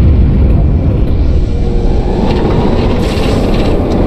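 A plasma blast crackles and hums.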